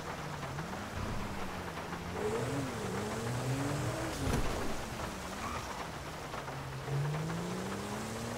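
A car engine revs and hums, rising and falling in pitch as it drives.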